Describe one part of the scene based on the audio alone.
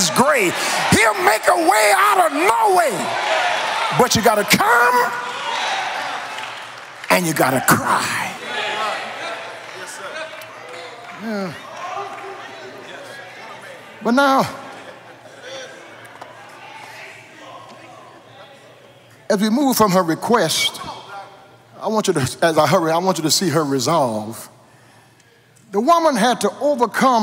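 An older man preaches with fervour into a microphone, his voice echoing in a large hall.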